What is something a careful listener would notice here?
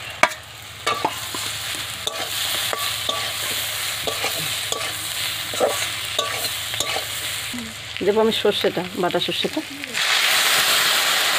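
Food sizzles steadily as it fries in a hot wok.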